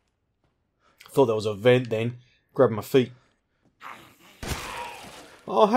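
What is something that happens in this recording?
A shotgun fires with loud, booming blasts.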